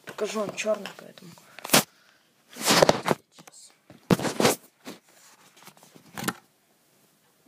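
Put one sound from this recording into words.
A small plastic toy figure clatters onto a wooden floor.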